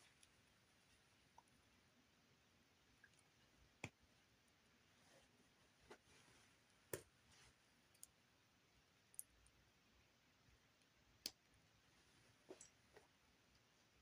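Small plastic bricks click and snap together now and then.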